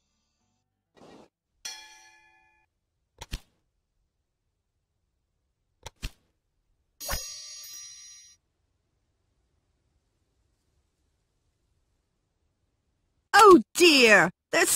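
Soft menu clicks and chimes sound now and then.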